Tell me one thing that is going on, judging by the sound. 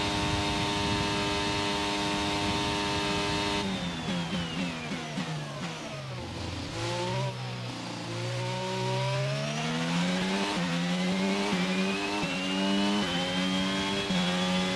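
A racing car engine screams at high revs, drops in pitch while braking and gear changes, then climbs again through the gears.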